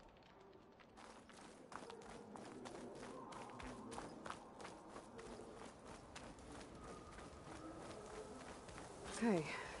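Footsteps crunch quickly over snow and gravel.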